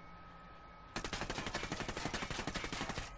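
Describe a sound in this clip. A rifle fires in a rapid burst of shots.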